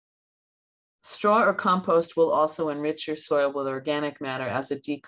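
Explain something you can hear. An elderly woman speaks calmly over an online call.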